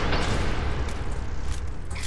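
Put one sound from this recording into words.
A rifle magazine clicks as the gun is reloaded.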